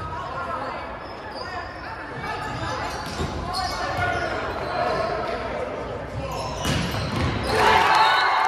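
A volleyball is struck with sharp thumps during a rally.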